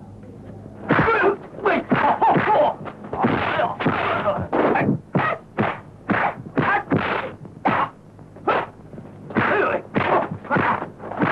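Men shout and grunt as they fight.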